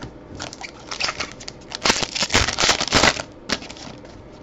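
A foil wrapper crinkles and tears open.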